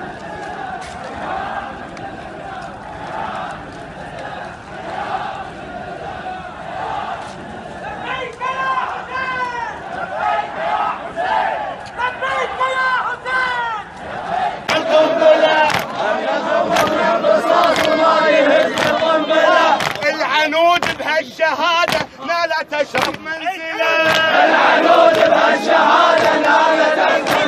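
A large crowd of men chants outdoors, loud and close.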